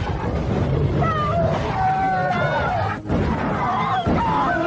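A large dog snarls and growls fiercely.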